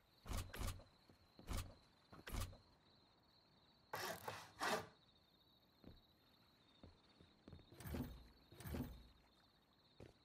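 Wooden building pieces thud into place.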